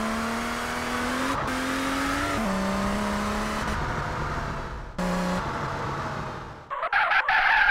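A car engine roars steadily, shifting gears as it speeds along.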